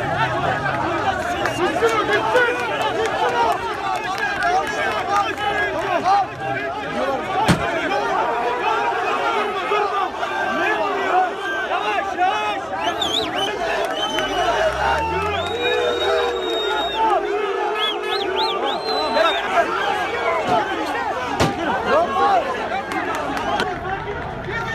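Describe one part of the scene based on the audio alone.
A large crowd of men shouts and chants loudly outdoors at night.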